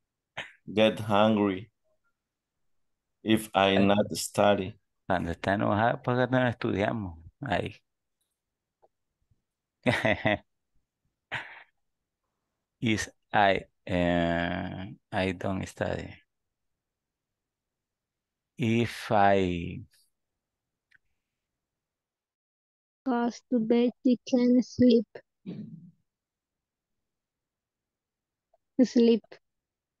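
A woman speaks calmly over an online call, in short phrases with pauses.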